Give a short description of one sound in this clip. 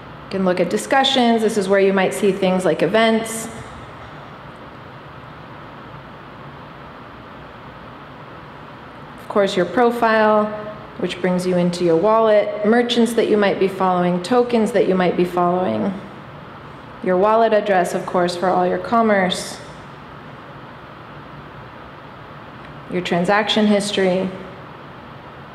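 A young woman speaks calmly into a microphone, heard through a loudspeaker in a large room.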